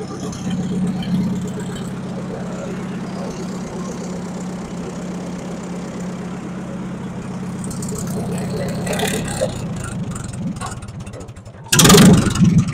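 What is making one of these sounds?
An old tractor engine idles with a steady, chugging putter.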